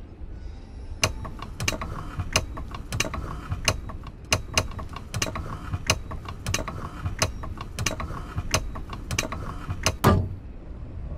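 A heavy wooden mechanism clicks and rattles as it turns.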